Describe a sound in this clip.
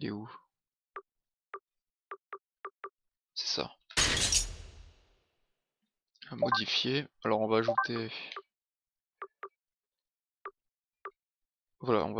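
Short soft beeps sound as a menu selection moves.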